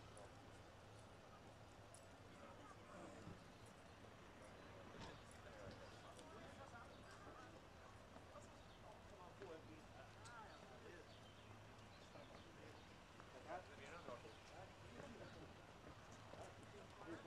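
A crowd of men and women chatters and calls out nearby outdoors.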